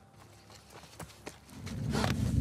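A sudden scuffle breaks out as a man is grabbed.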